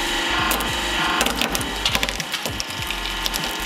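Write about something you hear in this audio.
Plastic cracks and crunches under heavy pressure.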